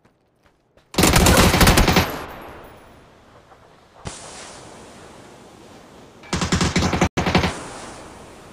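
Rapid gunfire bursts loudly in short volleys.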